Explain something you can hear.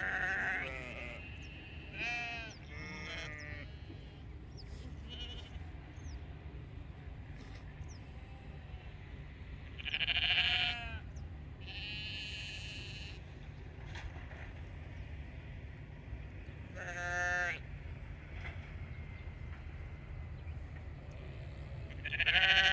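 Sheep bleat loudly now and then.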